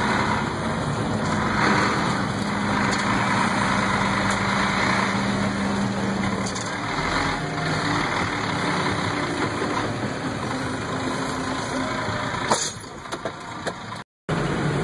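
A truck engine rumbles steadily close by, heard from inside a cab.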